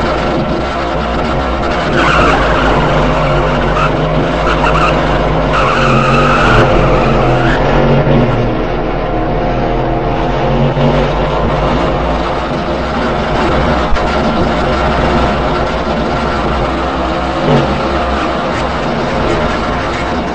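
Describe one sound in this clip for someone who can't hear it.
A stock car engine drones at high speed.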